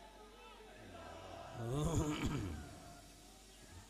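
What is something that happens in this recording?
A young man shouts a chant through a microphone.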